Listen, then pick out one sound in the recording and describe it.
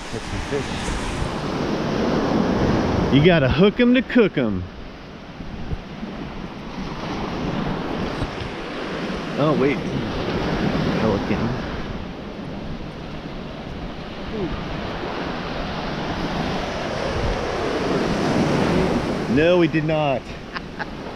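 Gentle waves wash onto a beach and foam over the sand.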